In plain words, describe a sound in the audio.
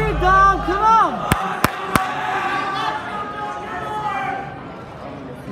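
A crowd cheers and whistles in a large echoing hall.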